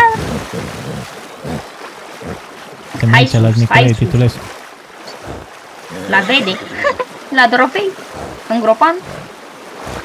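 A horse wades and splashes through water.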